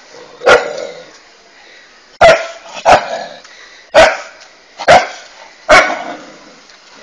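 A dog barks loudly and sharply, again and again.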